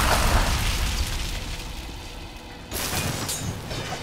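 A fiery explosion roars and crackles.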